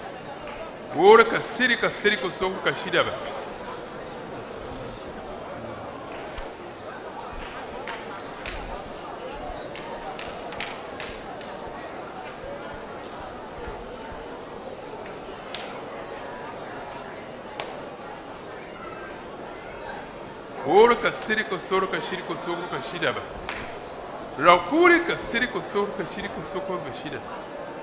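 A crowd of men and women cries out loudly in an echoing hall.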